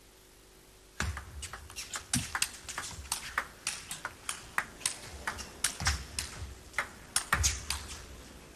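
A ping-pong ball clicks back and forth off paddles and a table in a quick rally.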